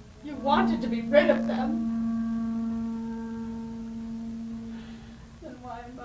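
A woman sings a long, held note.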